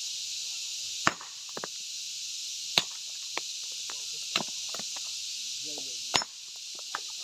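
A sledgehammer strikes rock with sharp, loud cracks.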